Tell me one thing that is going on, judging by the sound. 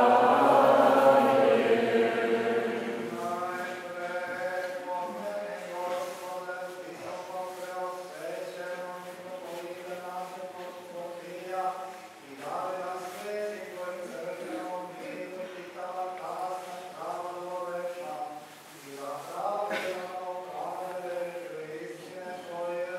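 A man chants slowly and steadily in an echoing hall.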